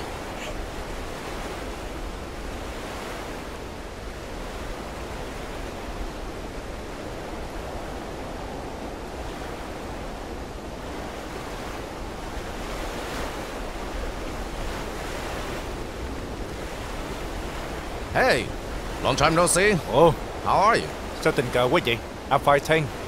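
Waves wash gently onto a beach.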